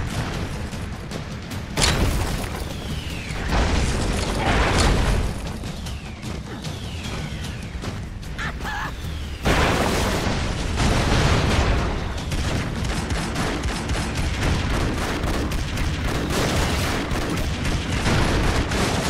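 Game gunfire rattles rapidly.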